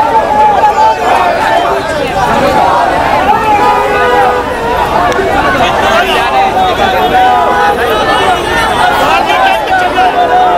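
A man shouts slogans to a crowd with animation.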